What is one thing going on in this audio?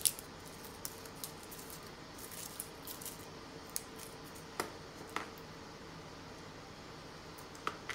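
Fingers peel garlic cloves with soft crackling and rustling.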